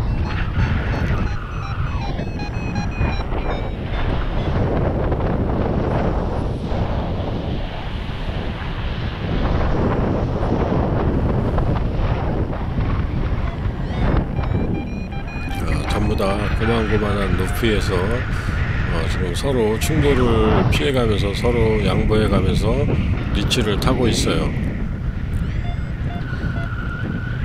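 Wind rushes steadily past in open air.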